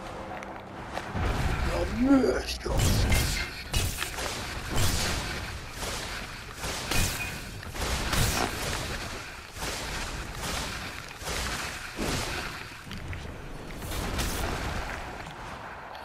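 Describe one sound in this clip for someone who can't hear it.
Magic spells whoosh and crackle in bursts.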